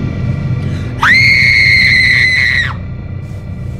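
A girl screams loudly.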